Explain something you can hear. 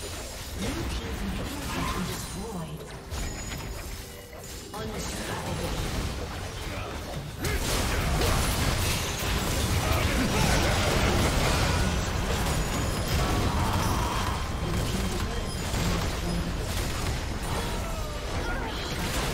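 Game battle effects clash and crackle with spell blasts.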